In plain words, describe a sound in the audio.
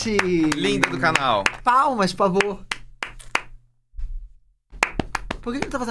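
Two men clap their hands.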